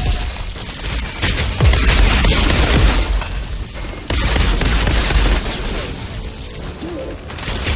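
Gunfire bursts in rapid shots.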